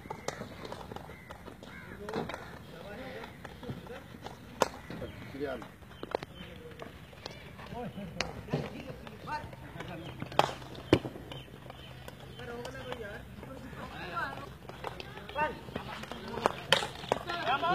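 Hockey sticks sharply strike a ball.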